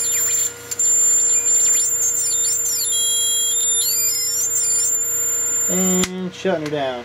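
An electric spark buzzes and crackles steadily.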